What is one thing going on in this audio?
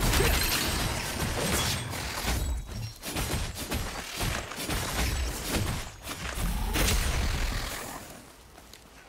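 Weapons clash and magic effects burst in quick, loud bursts.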